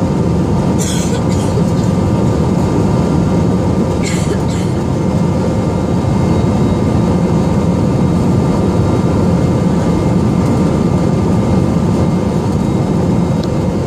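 A jet engine roars steadily in flight, heard from inside the cabin.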